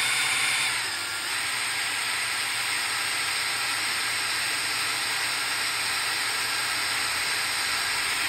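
A cordless drill whirs steadily.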